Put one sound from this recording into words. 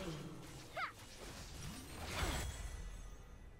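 Magic spells whoosh and crackle in a fight.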